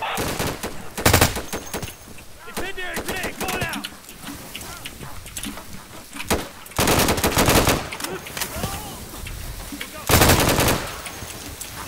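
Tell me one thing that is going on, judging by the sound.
Rapid rifle shots crack in short, loud bursts.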